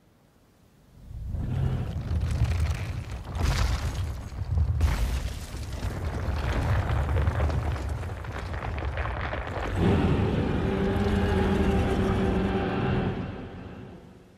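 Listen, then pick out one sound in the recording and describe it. Heavy thudding footsteps of a huge stone creature rumble and shake the ground.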